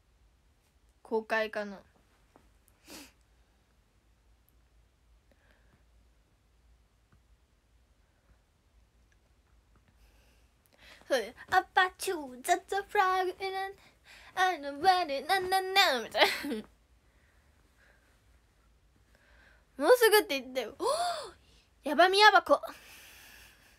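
A young girl talks close to a microphone with animation, in short bursts between pauses.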